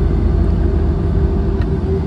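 A bus passes close by outside.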